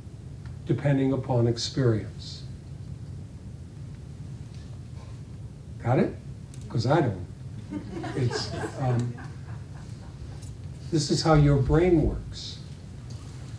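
An elderly man speaks calmly in short bursts through a microphone.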